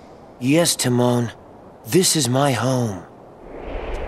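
A young man speaks calmly and clearly.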